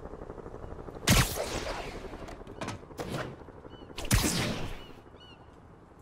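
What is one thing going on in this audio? Air rushes past in loud whooshes.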